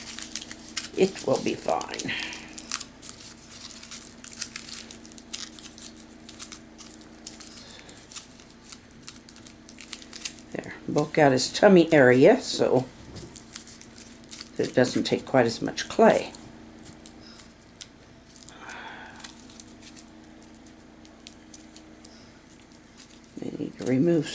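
Aluminium foil crinkles softly as it is handled.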